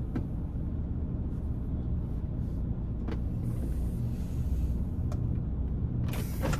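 A truck engine idles with a low, steady rumble.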